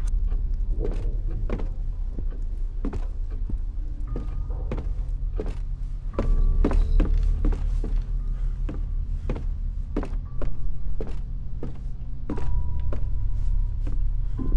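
Footsteps thud on wooden floorboards and stairs.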